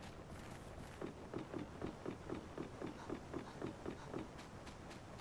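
Footsteps thud rhythmically on wooden planks.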